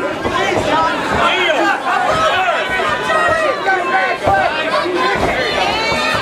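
A man shouts close by.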